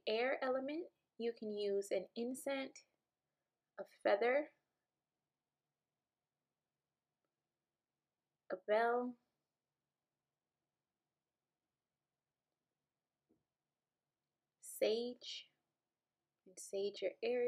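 A young woman speaks calmly and softly, close by, in short phrases with pauses.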